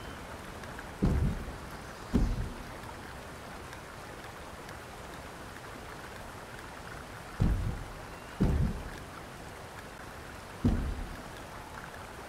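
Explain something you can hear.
A game interface gives out soft, deep thuds now and then.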